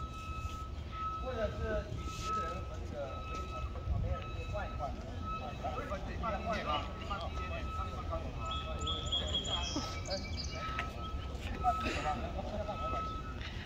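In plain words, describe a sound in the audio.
A crowd of people chatter in the open air.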